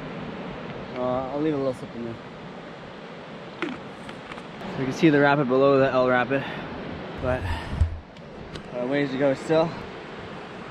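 A man talks close by in a relaxed way.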